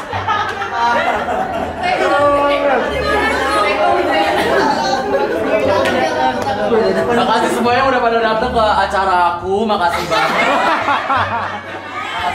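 A group of people chatter and laugh in a room.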